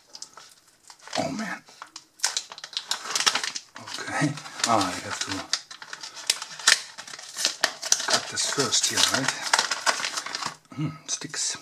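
Plastic packaging crinkles and crackles.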